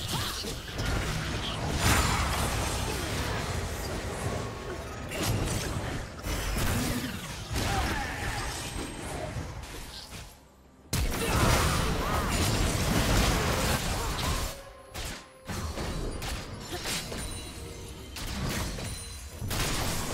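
Magic spells crackle and burst during a fight.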